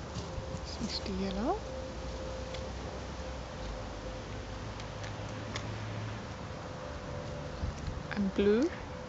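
Puppies give short, high rising yelps close by.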